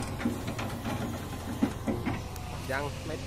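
Soil pours from an excavator bucket and thuds into a truck bed.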